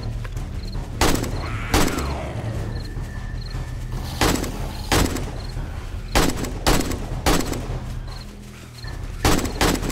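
A gun fires single loud shots with short pauses between them.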